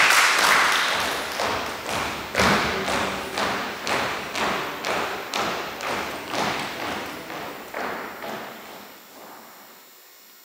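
Hard shoes step and tap in rhythm on a wooden floor in a large echoing hall.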